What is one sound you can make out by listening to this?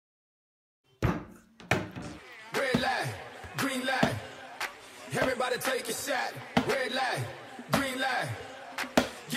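A plastic water bottle thumps down onto a hard surface several times.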